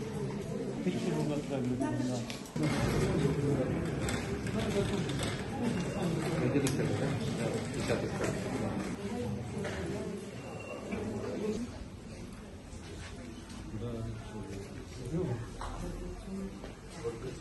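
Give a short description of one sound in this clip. An elderly man speaks calmly nearby.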